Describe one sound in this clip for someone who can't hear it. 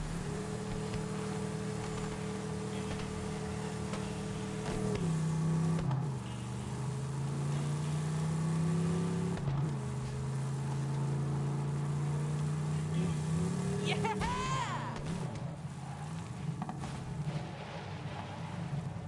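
A buggy engine hums steadily and shifts pitch as gears change.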